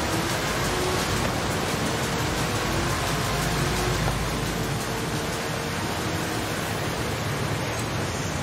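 A car engine roars loudly at high speed.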